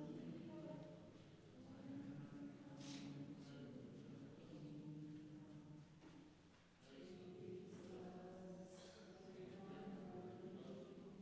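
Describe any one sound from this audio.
A congregation of men and women sings together in a large echoing hall.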